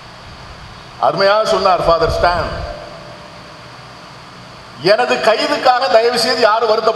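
An elderly man speaks with animation into a microphone, heard through a loudspeaker.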